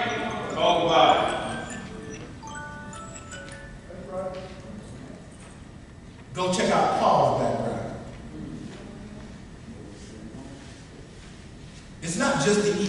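A man speaks calmly through a microphone in a large echoing room.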